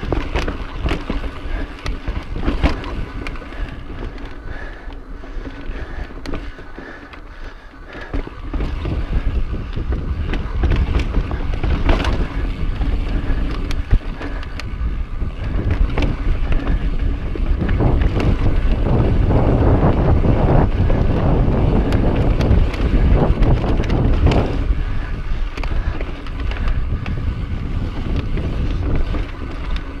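Wind rumbles loudly past the rider.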